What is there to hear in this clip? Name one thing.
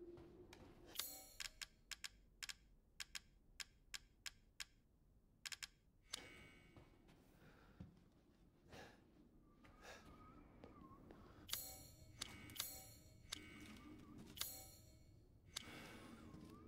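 Short electronic menu clicks tick sharply, one after another.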